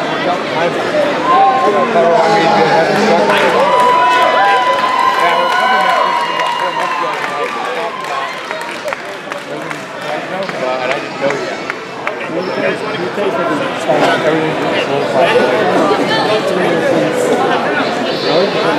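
A crowd chatters and cheers loudly in a large echoing hall.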